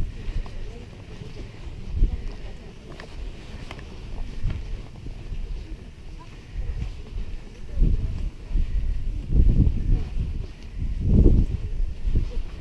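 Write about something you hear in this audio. Footsteps swish through dry grass.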